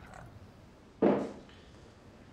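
A lid clinks against a porcelain tea jar.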